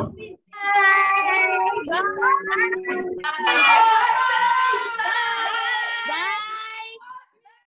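Young girls laugh over an online call.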